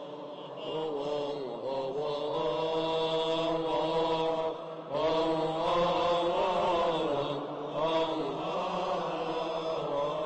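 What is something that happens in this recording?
A large choir of men chants together in a slow, sustained melody, echoing in a large hall.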